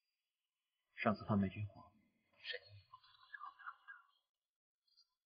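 A young man speaks calmly and quietly, close by.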